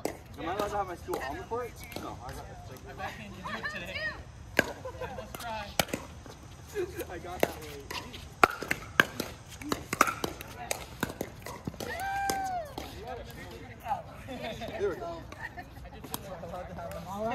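Paddles hit a plastic ball with sharp pops, again and again.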